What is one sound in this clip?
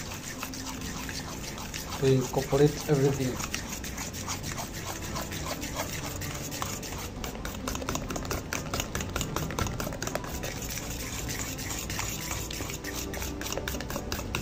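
A spoon scrapes and clicks against a metal pan while stirring a thick batter.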